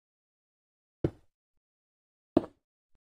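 Stone blocks are set down with sharp knocks.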